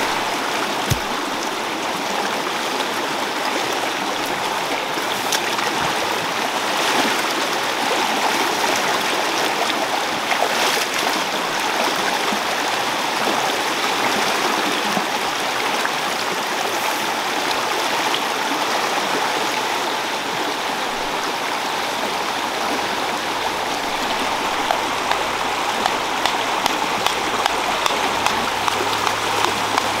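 A stream rushes and gurgles steadily.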